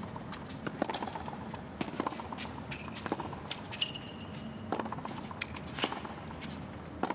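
Tennis balls are struck hard with rackets in a steady rally.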